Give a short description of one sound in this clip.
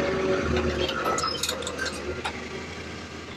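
Metal clanks and creaks as a lifted vehicle frame swings and settles.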